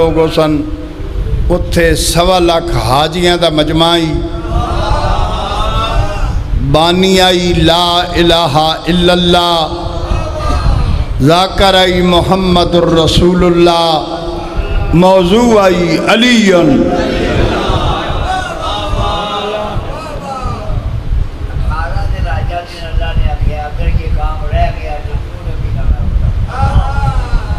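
A middle-aged man chants loudly and with feeling into a microphone, heard through loudspeakers in an echoing hall.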